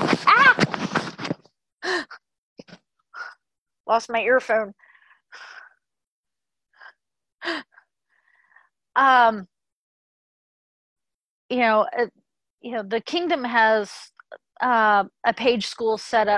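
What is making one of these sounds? A middle-aged woman speaks with animation, close to a microphone, in bursts with pauses.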